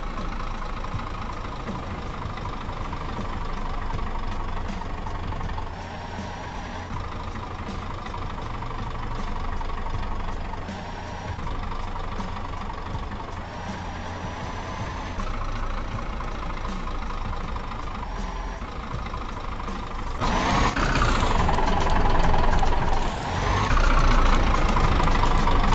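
A semi truck's engine drones, rising in pitch between gear shifts.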